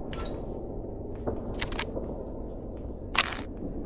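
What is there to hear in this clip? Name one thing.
A crossbow is picked up with a short clatter.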